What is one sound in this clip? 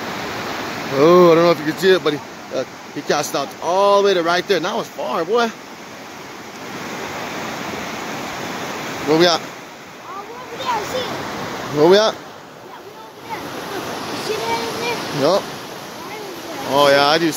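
A young boy talks nearby.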